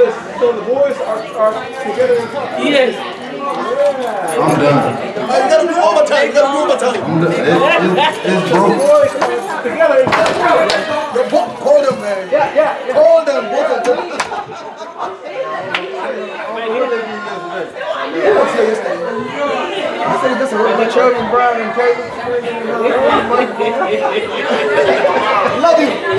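Several adults chat at once in a large echoing hall.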